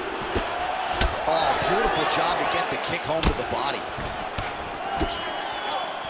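Kicks and punches land with sharp thuds.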